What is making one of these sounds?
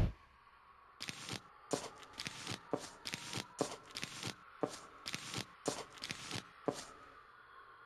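A game sound pops each time a plant is placed.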